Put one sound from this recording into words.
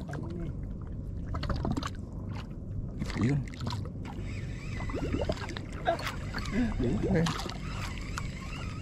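Water laps against a small boat's hull.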